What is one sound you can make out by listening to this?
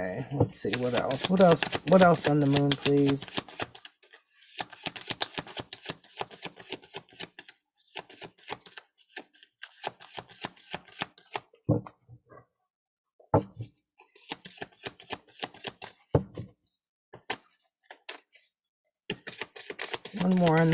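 Playing cards riffle and flick as hands shuffle a deck close by.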